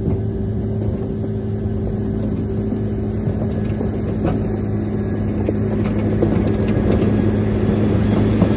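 A diesel motor grader engine drones as the machine drives closer.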